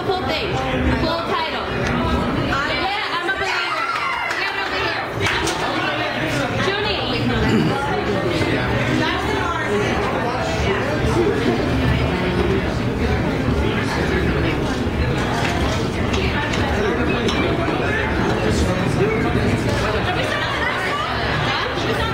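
A crowd of men and women chatter loudly in a busy room.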